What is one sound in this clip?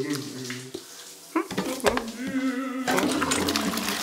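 A cat laps water noisily.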